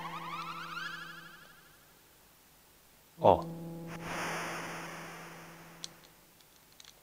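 A retro video game plays chiming electronic sound effects.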